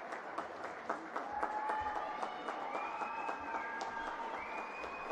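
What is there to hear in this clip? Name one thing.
A group of young men cheer and chant together.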